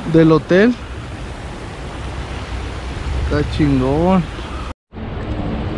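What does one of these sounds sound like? A river rushes and splashes over rocks nearby.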